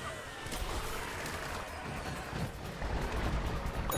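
Video game explosions boom.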